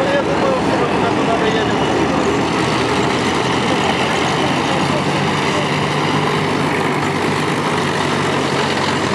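Diesel engines of tracked armoured vehicles rumble as they roll past.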